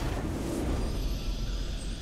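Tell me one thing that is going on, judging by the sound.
A triumphant victory sting plays.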